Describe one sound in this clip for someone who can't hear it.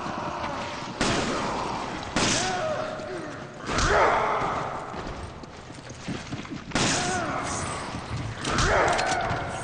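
Gunshots ring out sharply, one at a time.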